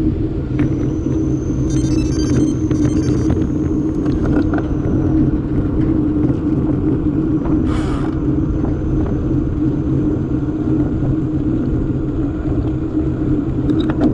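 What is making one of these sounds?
Wind rushes loudly past.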